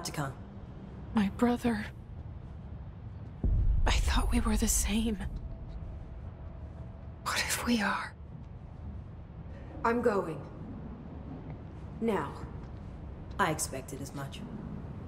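An older woman speaks calmly.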